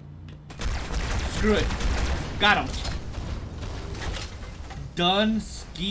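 Energy weapon shots crackle and zap in quick bursts.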